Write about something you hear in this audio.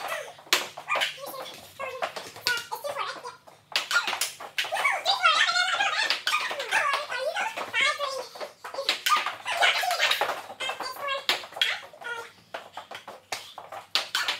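A ping pong ball clicks sharply against paddles and a table in a quick rally.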